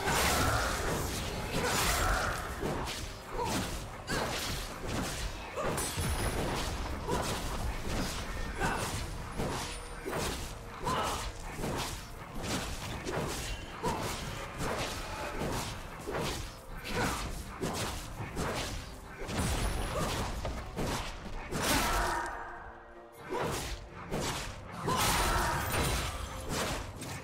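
Video game combat effects clash and burst in quick succession.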